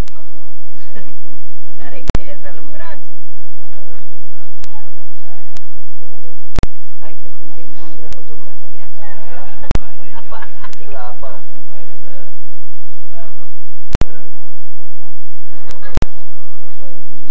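Several adult men and women chat casually outdoors.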